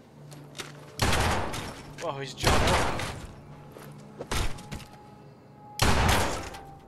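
Loud gunshots blast.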